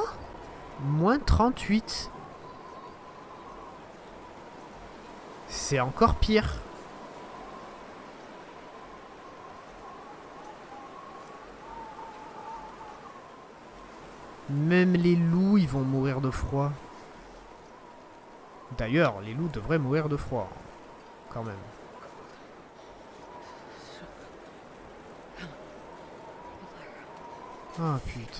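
Wind blows steadily across open snow.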